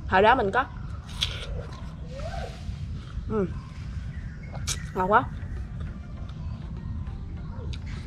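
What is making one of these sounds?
A young woman chews and crunches food close by.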